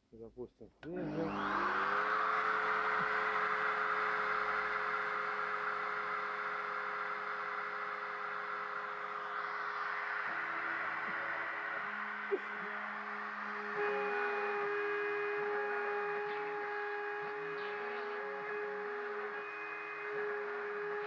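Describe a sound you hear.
A router motor whirs to speed and runs with a steady high whine.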